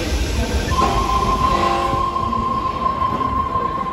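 Train doors slide shut.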